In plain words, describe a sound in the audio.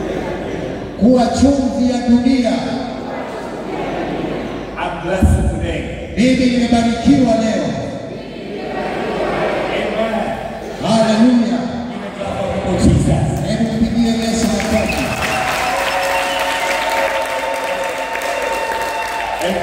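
A second man speaks calmly through a microphone.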